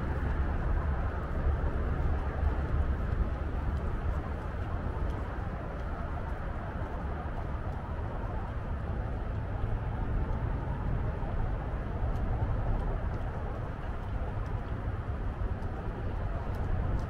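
Wind blows steadily across an open outdoor space.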